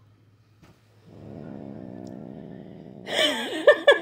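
A cat purrs close by.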